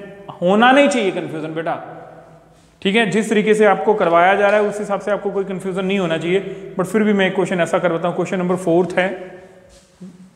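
A man speaks with animation into a clip-on microphone.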